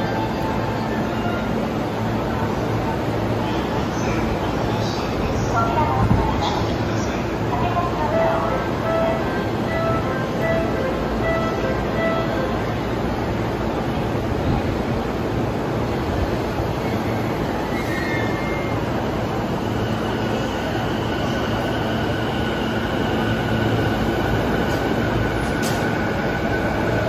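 A train rumbles slowly into the station.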